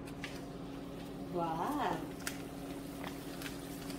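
Hot oil sizzles in a frying pan.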